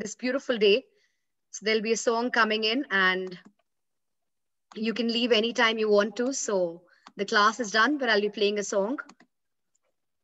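A woman speaks with animation, close to a microphone as if on an online call.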